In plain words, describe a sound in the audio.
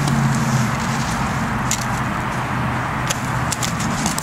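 A horse's hooves step on dirt.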